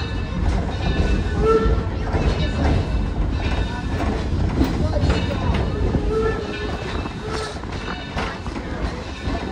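A metal chain clinks and jangles against the side of the tram.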